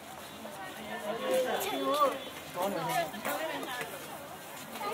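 A child's high voice chatters close by.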